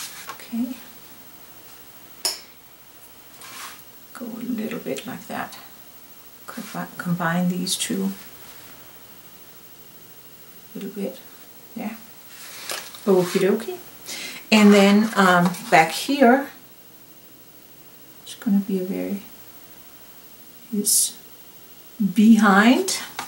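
A paintbrush dabs and brushes softly on paper.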